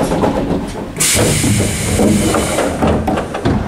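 Train doors slide shut with a loud hiss and thud.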